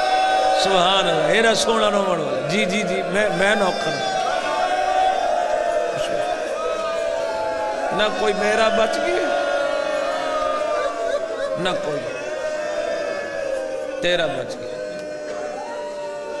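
A man speaks passionately through a microphone and loudspeakers.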